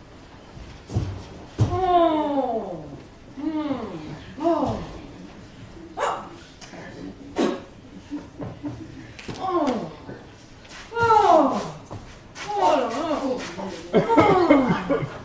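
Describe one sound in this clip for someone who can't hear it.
A woman speaks theatrically, her voice swooping up and down, in a reverberant hall.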